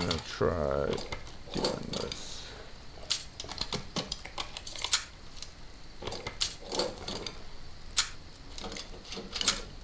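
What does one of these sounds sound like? Small metal lock pins click as a lock is picked.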